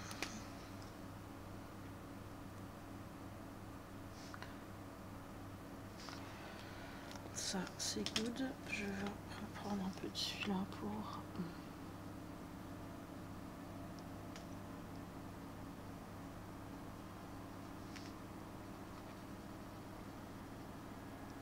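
A marker scratches softly on paper.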